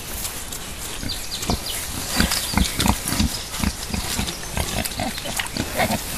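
Wild boars grunt softly.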